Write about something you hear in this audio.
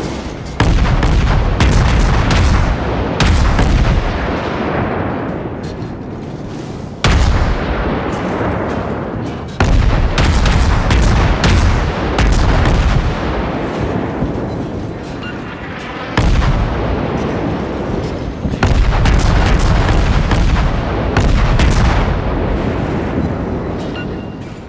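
Naval guns fire in loud, booming salvos that rumble and fade.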